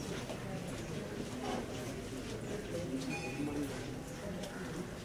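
A crowd of men murmurs and talks quietly nearby.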